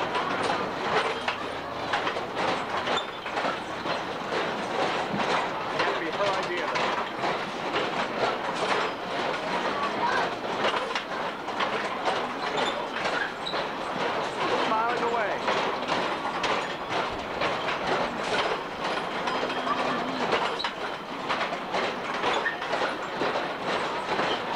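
A kiddie ride's cars rattle and clatter as they turn round.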